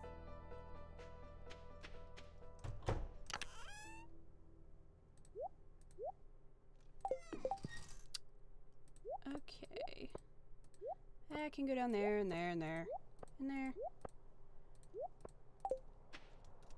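Short electronic blips and chimes sound as game menus open and items are picked.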